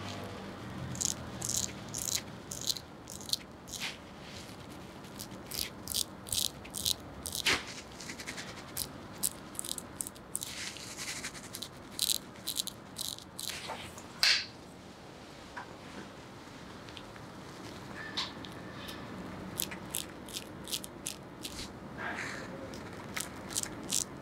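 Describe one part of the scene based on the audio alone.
A straight razor scrapes stubble close up in short, crisp strokes.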